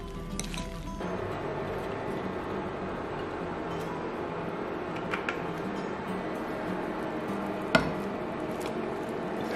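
Hot oil sizzles in a pan.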